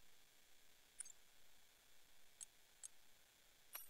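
Short soft electronic clicks sound as a game menu is navigated.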